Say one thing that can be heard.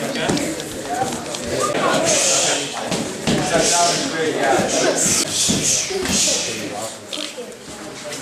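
Many people talk and call out in a busy, echoing room.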